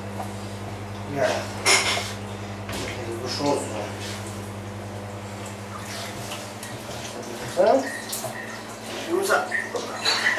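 Soft wet curd squelches as hands press it.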